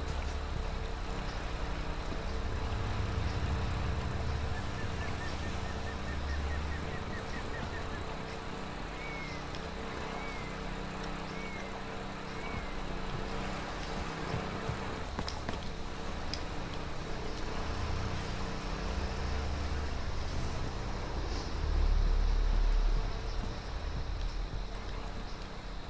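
Footsteps crunch on concrete.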